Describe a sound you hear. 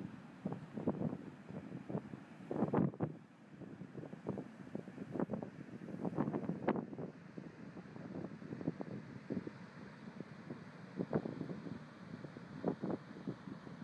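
Ocean waves break and wash onto the shore outdoors.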